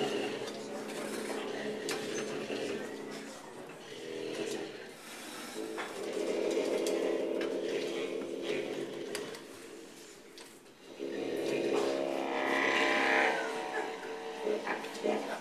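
A trumpet blares loudly alongside a saxophone.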